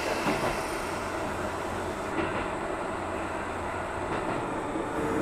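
Train wheels clack now and then over rail joints.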